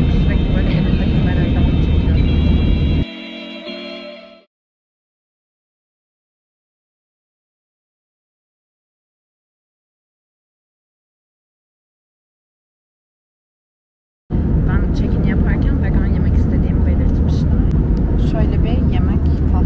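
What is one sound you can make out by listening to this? A plane's engines roar steadily in the cabin.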